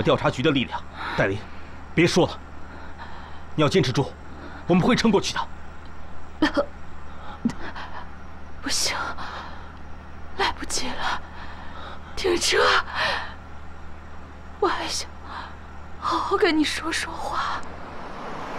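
A man speaks urgently and anxiously up close.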